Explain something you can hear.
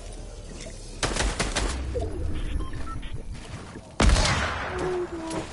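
Video game gunshots crack in quick bursts.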